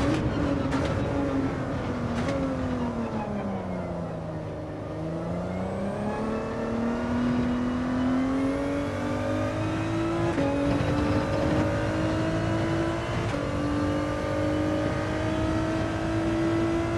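A racing car engine roars loudly, dropping in pitch as it slows and then climbing steadily as it speeds up.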